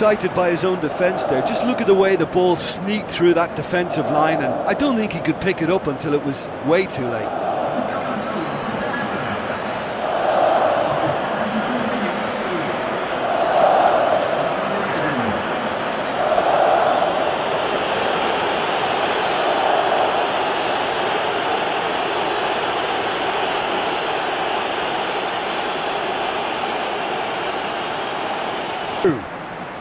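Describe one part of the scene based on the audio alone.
A large stadium crowd roars and cheers steadily, swelling at times.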